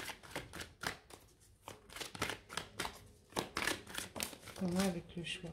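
Playing cards shuffle with quick papery flicks.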